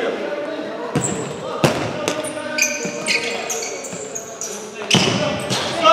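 A ball is kicked with sharp thuds that echo around a large indoor hall.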